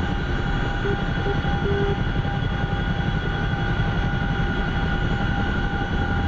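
A helicopter's engine and rotor drone loudly and steadily from inside the cabin.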